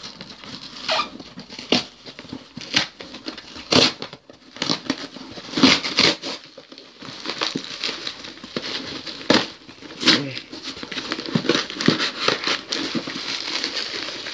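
Packing tape rips as a box is torn open.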